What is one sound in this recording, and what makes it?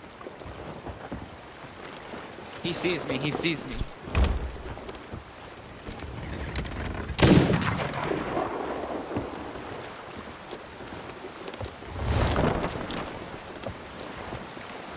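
Sea waves wash steadily against a wooden ship.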